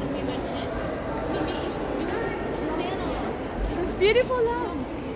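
Many people chatter and murmur in a large echoing hall.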